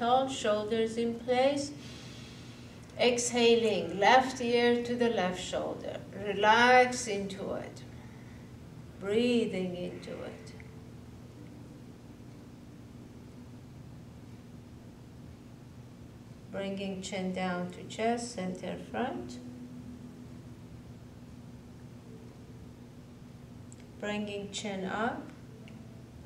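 A middle-aged woman speaks calmly and slowly, close to a microphone, with long pauses.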